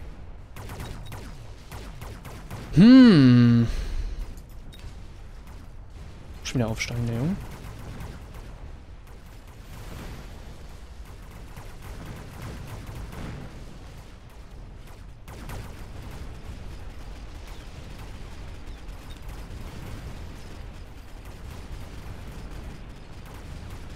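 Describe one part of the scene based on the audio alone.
Rapid gunfire and laser blasts crackle in a battle.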